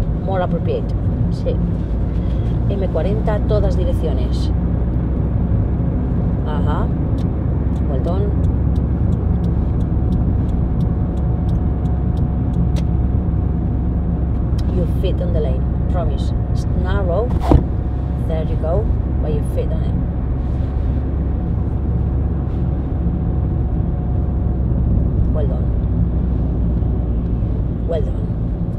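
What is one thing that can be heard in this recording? A car engine hums steadily as it drives on a road.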